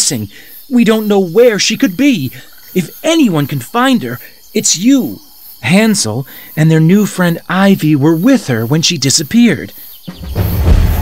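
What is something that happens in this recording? A man speaks calmly and close, as if through a microphone.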